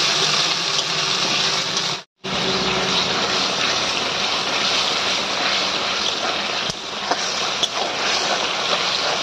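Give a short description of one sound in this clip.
Thick sauce sizzles and bubbles steadily in a hot pan.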